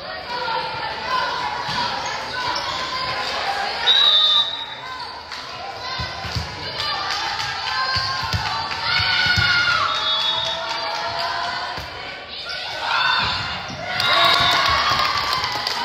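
A volleyball thuds off hands and the floor.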